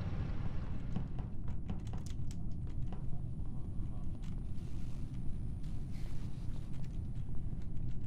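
Quick light footsteps tap along a hard floor.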